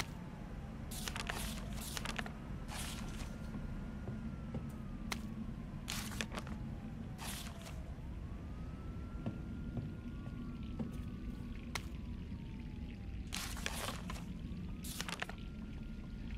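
Sheets of paper rustle as pages are turned.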